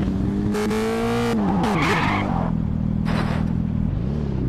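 Tyres screech as a motorcycle skids.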